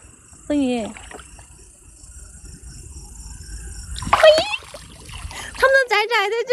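Water splashes and drips from a net.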